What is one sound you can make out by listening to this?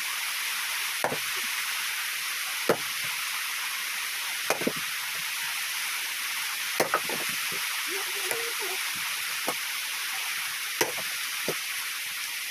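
An axe chops into wood with sharp thuds.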